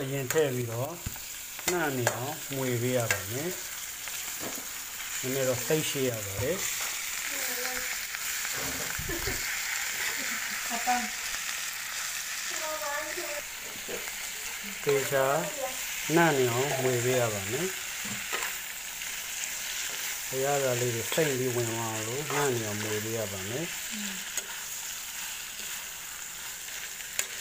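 Food sizzles and crackles in a hot frying pan.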